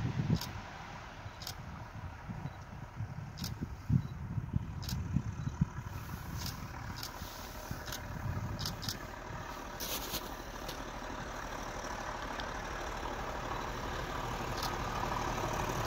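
A train rumbles as it approaches from a distance, growing louder.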